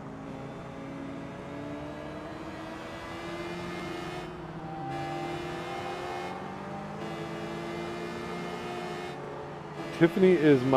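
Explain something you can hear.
A motorcycle engine hums and revs steadily.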